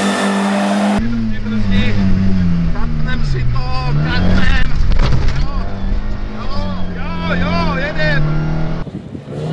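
A rally car engine drones loudly from inside the car.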